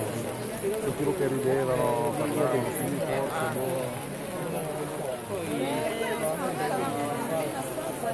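Rain patters on umbrellas.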